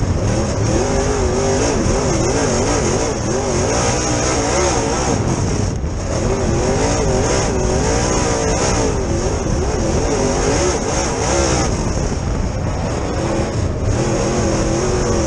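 A race car engine roars loudly up close, its pitch rising and falling as it revs.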